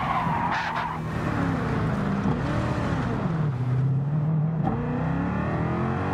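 Tyres squeal as a car slides through a corner.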